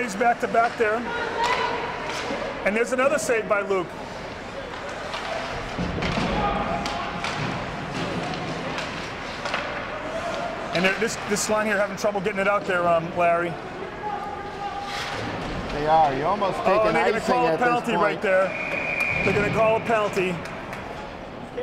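Spectators talk and call out nearby in an echoing rink.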